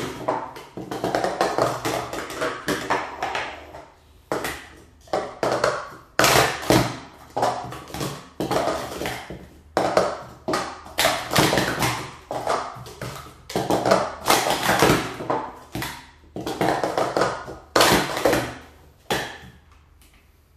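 Plastic cups clatter and click rapidly as they are stacked and unstacked on a mat.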